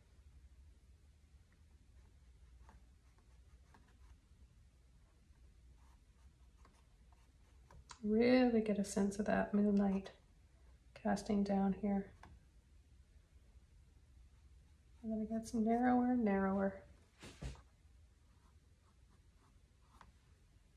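A paintbrush strokes across canvas.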